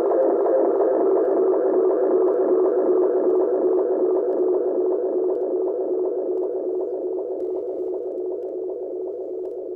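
A tape echo unit churns out rapidly repeating echoes that slowly fade.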